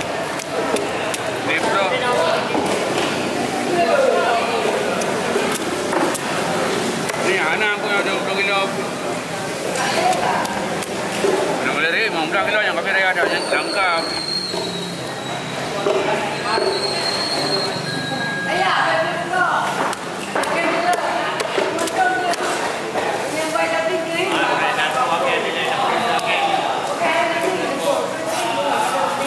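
Men chatter in a busy, echoing hall.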